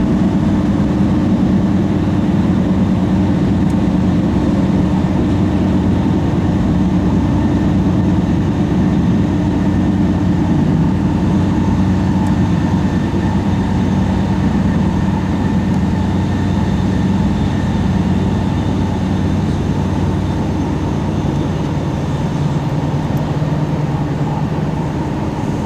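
A train rumbles and hums steadily while riding along the tracks.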